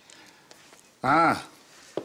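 A middle-aged man exclaims loudly nearby.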